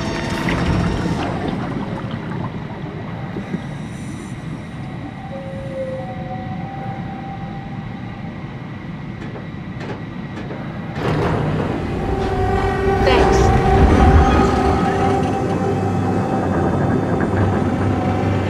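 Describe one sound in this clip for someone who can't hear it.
A submarine engine hums and rumbles steadily underwater, growing louder partway through.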